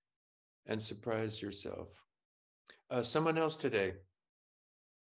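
An elderly man speaks calmly and closely through a microphone, heard as over an online call.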